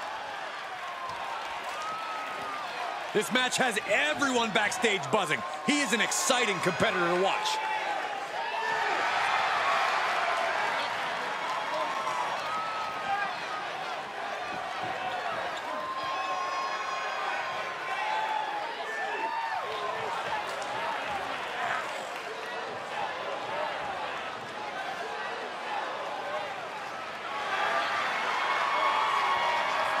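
A large crowd cheers and whistles throughout, echoing in a big arena.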